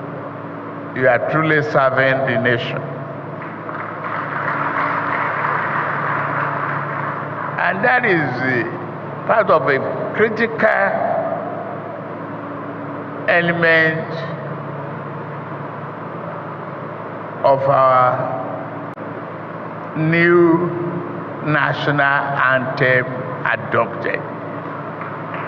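An elderly man speaks slowly into a microphone over a loudspeaker.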